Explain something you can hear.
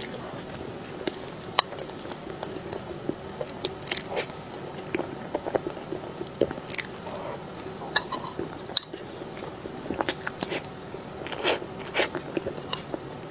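A fork clinks and scrapes against a plate.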